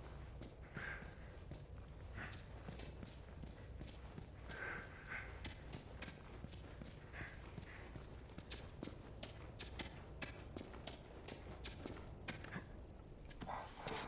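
Footsteps tap on hard stairs.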